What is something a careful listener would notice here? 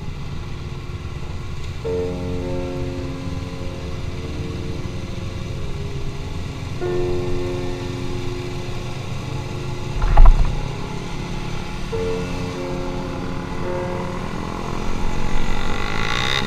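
Many other motorcycles drone nearby.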